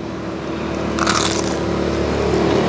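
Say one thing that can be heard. Crispy fried chicken crunches as a young man bites into it.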